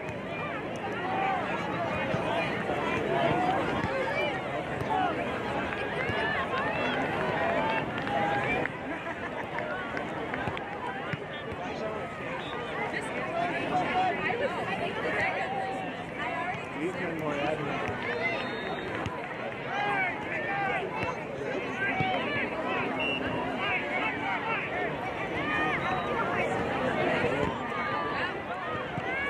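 A crowd of spectators chatters and calls out nearby outdoors.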